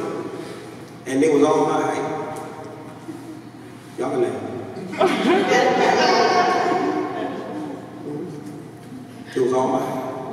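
A man speaks with animation through a microphone and loudspeakers, in an echoing hall.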